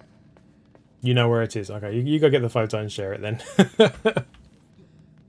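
A man speaks with animation close to a headset microphone.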